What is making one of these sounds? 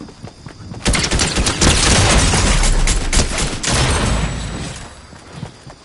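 Gunshots blast in rapid bursts.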